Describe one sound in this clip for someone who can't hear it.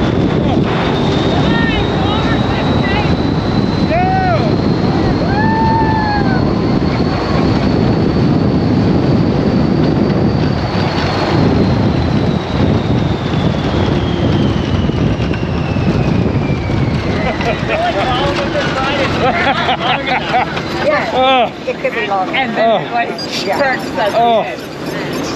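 A ride vehicle rumbles and rattles steadily along a track.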